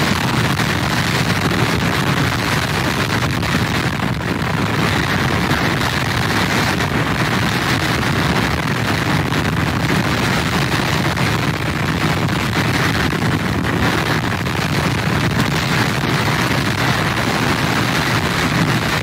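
Strong wind roars and buffets steadily outdoors.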